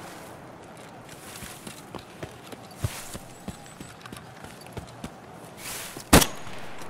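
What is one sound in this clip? Footsteps crunch over dirt and grass.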